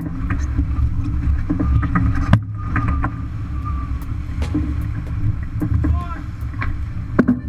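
Winches click and rattle as sailors grind them.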